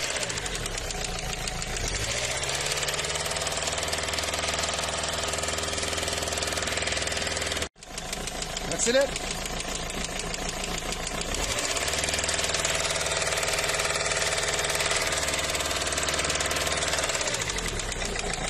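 A diesel engine runs close by, revving up and holding steady before dropping back to idle.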